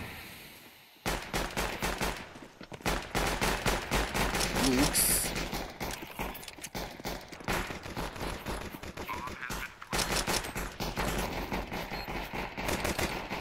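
Gunshots crack rapidly.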